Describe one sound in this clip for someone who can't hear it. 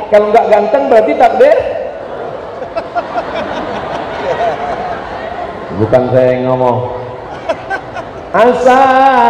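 A man speaks with animation through a microphone in a large echoing hall.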